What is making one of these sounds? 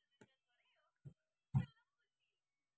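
A metal spoon clinks against a plastic bowl.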